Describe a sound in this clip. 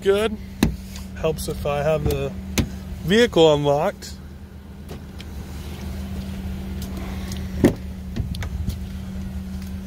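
A car door unlatches and swings open.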